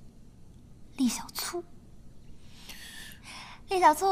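A young woman speaks teasingly nearby.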